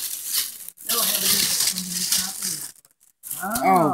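A plastic sheet rustles and crinkles close by.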